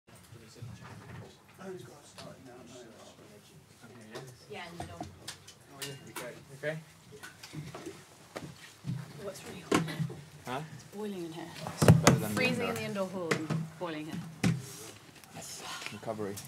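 Several men chat nearby.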